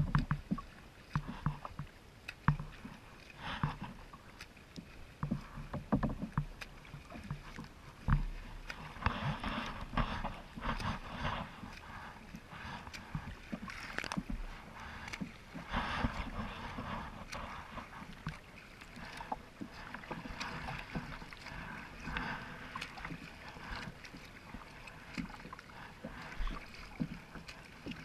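A swimmer's arms splash through the water nearby.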